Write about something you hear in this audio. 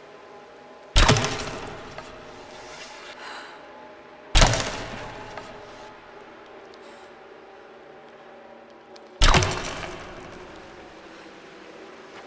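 Explosive arrows burst with loud booms that echo away.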